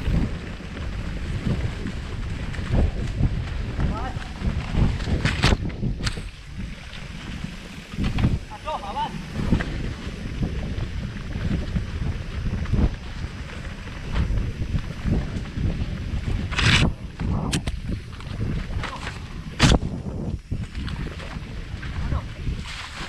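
Bicycle tyres rumble and rattle over a bumpy dirt trail.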